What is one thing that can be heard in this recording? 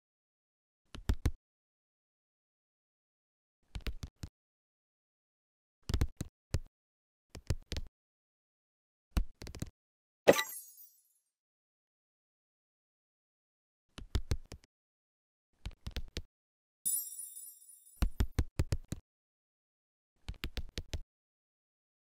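Short soft popping sounds play again and again as pieces stack up.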